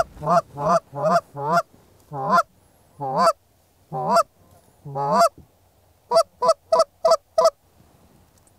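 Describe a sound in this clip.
Geese honk loudly and repeatedly nearby.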